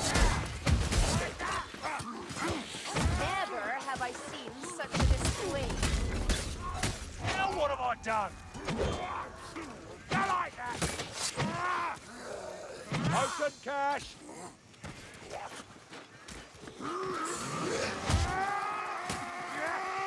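Blades slash and strike with sharp, heavy hits.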